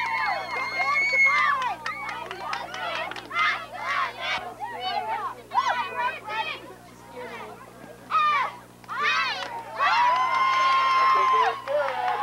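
Spectators cheer and shout loudly nearby outdoors.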